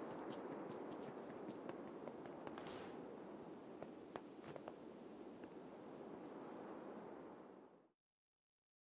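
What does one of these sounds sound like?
A waterfall roars steadily in the distance.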